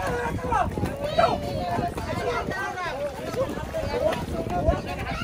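Water laps and sloshes steadily outdoors.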